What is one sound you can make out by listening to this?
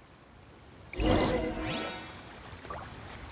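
A bright magical whoosh and chime ring out.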